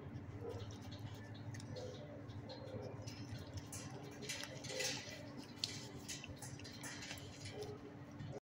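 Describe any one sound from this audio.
A dog licks and slurps wetly up close.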